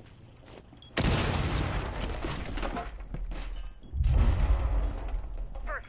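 Debris and broken wood clatter and scatter.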